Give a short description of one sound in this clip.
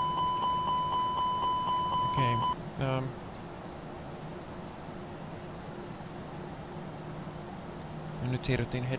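Aircraft engines drone steadily inside a cockpit.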